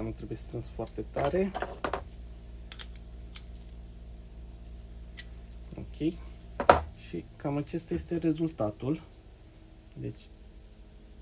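Metal tool parts click and clink as they are handled.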